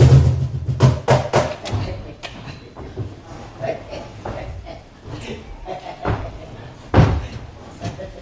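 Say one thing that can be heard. Footsteps thud on a wooden stage.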